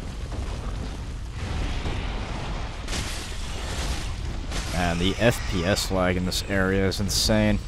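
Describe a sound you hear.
A sword swishes and strikes a large beast.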